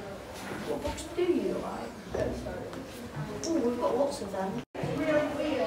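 A young boy speaks to another boy.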